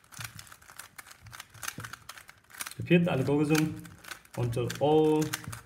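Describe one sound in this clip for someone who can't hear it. A plastic puzzle cube clicks and rattles as its layers are twisted.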